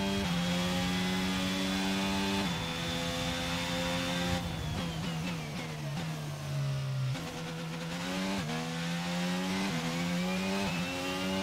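A racing car engine roars at high revs, dropping in pitch as the car brakes into a corner and rising again as it accelerates.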